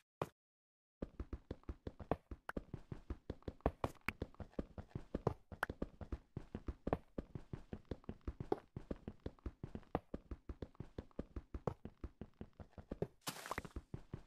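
Blocks are hit quickly and repeatedly as stone is mined in a game.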